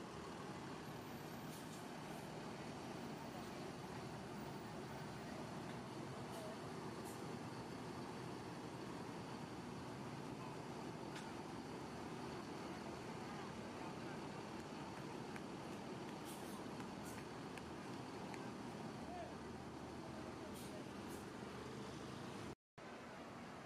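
A bus engine idles and rumbles nearby.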